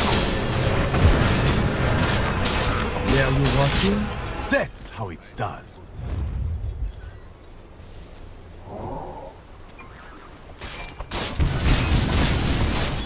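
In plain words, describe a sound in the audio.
Game battle effects crash, clang and whoosh in quick bursts.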